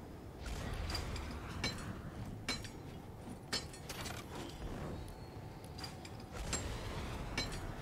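A pickaxe strikes hard surfaces in quick knocks.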